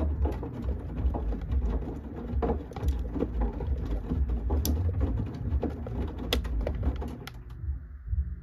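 Wet laundry tumbles and sloshes inside a washing machine drum.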